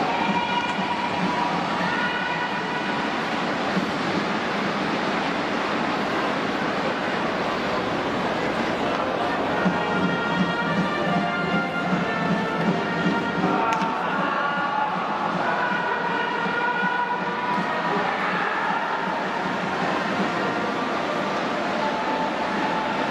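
A large crowd cheers and chants loudly in a stadium.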